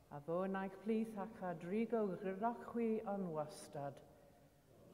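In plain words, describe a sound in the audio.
An elderly man chants aloud through a microphone in a large echoing hall.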